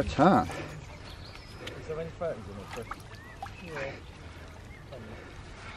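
A fish splashes in shallow water.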